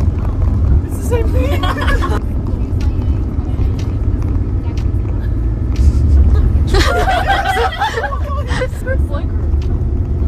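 Young women talk and laugh excitedly nearby.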